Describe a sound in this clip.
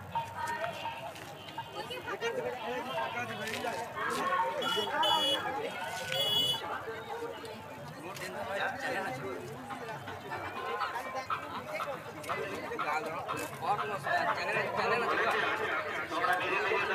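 Several men talk loudly and with animation nearby.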